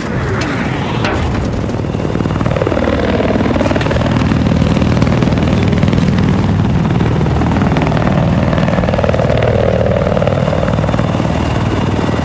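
A helicopter engine whines and surges as it swoops and turns.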